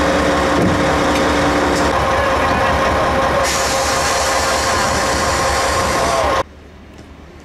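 A diesel locomotive engine idles loudly close by.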